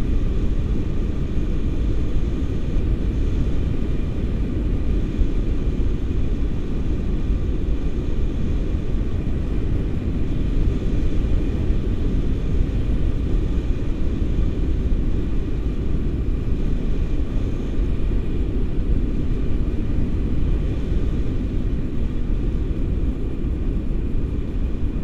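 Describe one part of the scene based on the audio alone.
Strong wind buffets and roars past the microphone.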